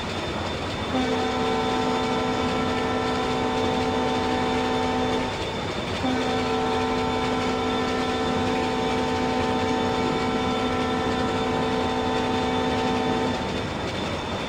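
A train horn blares in two long blasts.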